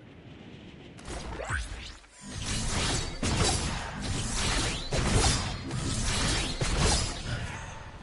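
Loud whooshing wind rushes past a game character launched high into the air.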